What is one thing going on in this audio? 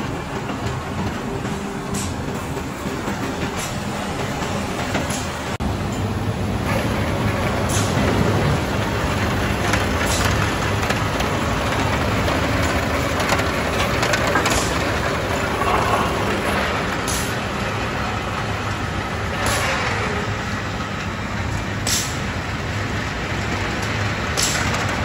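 Heavy mill machinery rumbles and hums steadily.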